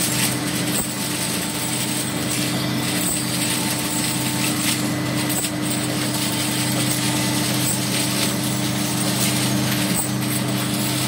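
Glass vials clink against each other as they move along.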